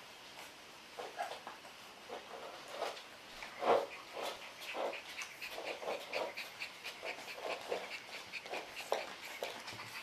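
Puppies whimper and yip in high, short cries.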